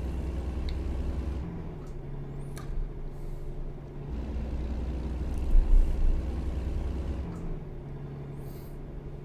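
A truck engine rumbles steadily, shifting between deeper and higher drones.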